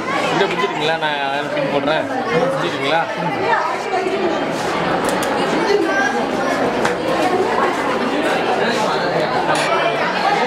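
A crowd of children chatter and talk loudly in an echoing hall.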